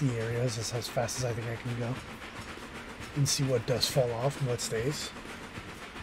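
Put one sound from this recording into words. A steam locomotive's whistle blows in loud blasts.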